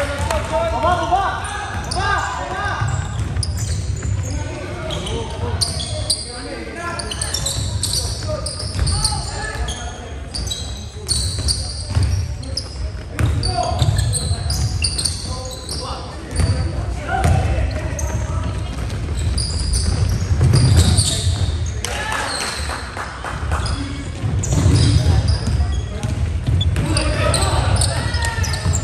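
Sneakers squeak sharply on the gym floor.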